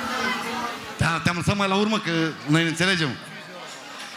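A man speaks loudly and with animation through a microphone and loudspeakers.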